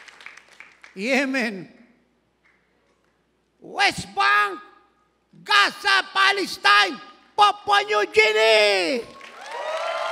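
An elderly man speaks forcefully through a microphone in a large echoing hall.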